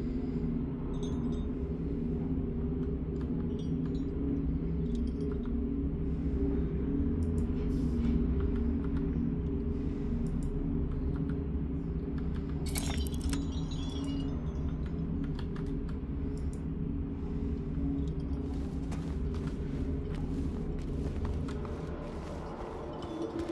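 Keyboard keys click and clatter under fingers.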